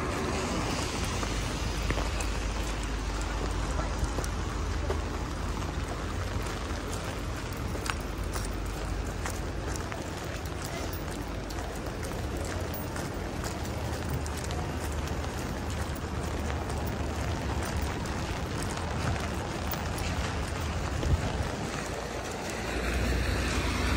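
Footsteps splash on wet pavement.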